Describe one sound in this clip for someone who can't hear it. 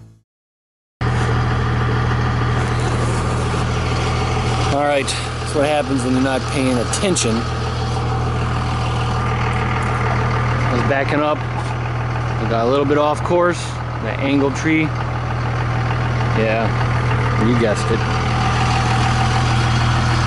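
A pickup truck's engine idles with a steady low hum.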